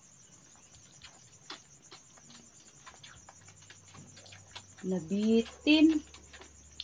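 A puppy suckles noisily at a bottle.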